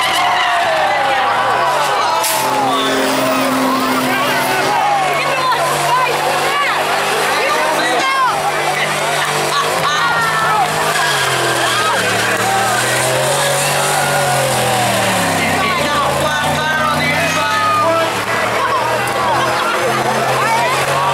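A truck engine roars at high revs.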